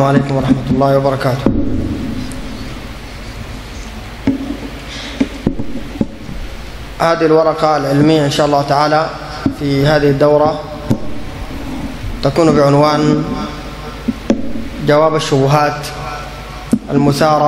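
A man chants and speaks calmly through a microphone, in bursts with pauses.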